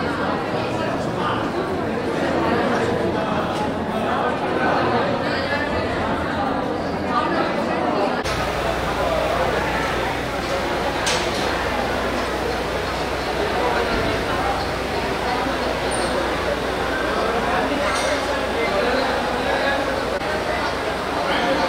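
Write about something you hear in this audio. A crowd of men and women chatters all around in an echoing hall.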